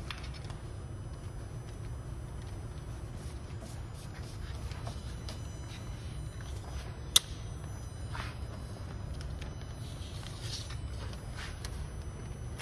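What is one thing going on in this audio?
Small clicks and knocks come from hands handling machine parts.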